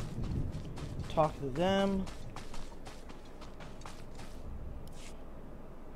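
Footsteps tread softly over grass.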